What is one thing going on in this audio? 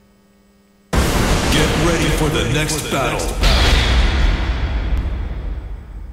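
Loud arcade game music and effects start suddenly and blare on.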